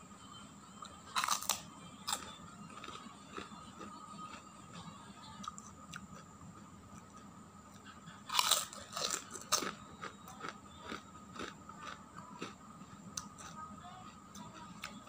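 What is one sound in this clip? A man crunches crispy crackers loudly up close.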